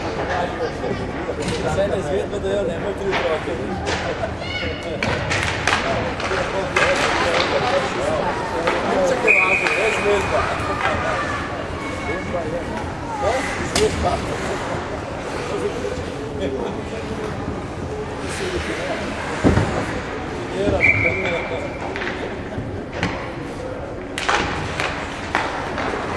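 Ice skates scrape and swish across the ice.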